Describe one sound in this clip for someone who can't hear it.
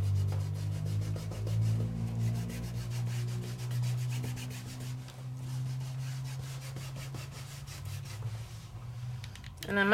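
A small pad rubs and dabs against paper in quick, soft strokes.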